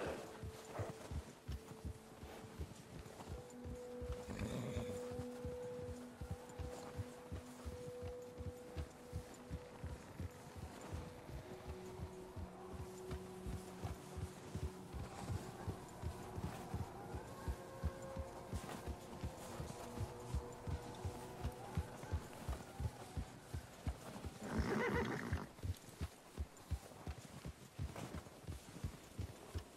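A horse gallops through snow with rapid, muffled hoofbeats.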